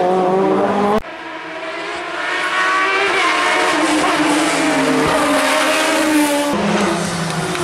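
A race car engine screams as it climbs a bend.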